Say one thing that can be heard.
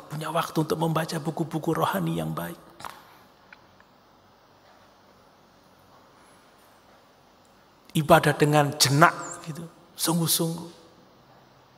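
A man speaks with emphasis into a microphone, pausing between phrases.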